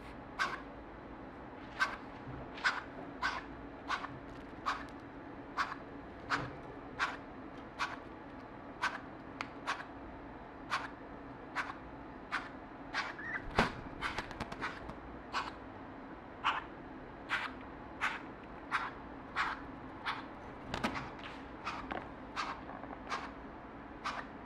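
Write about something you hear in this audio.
An owl calls with short, sharp chirps, over and over.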